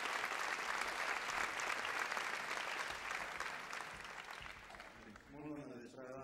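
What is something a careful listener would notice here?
An audience applauds in a large hall, and the applause slowly fades.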